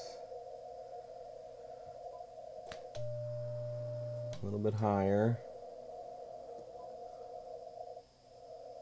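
A radio gives off a steady, humming tone.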